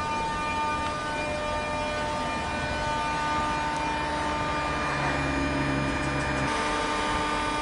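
An electric train pulls away, its motors whining with steady pitched tones.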